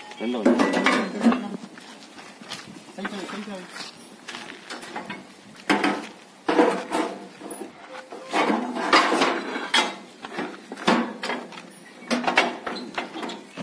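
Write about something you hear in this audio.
Heavy metal parts clank against a metal box.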